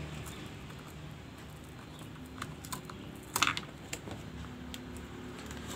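A plastic pry tool clicks and scrapes against a phone's casing.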